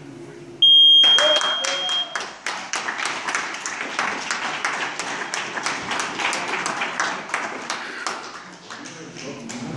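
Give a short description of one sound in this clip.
A crowd of people applauds loudly in an echoing hall.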